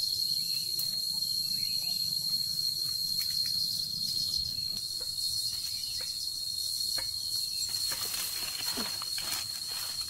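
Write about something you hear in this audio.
Leaves rustle as branches are pulled.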